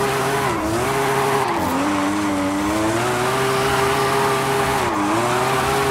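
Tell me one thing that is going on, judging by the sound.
Tyres squeal as a car skids sideways on asphalt.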